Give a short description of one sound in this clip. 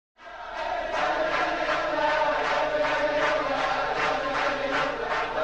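Men clap their hands in rhythm.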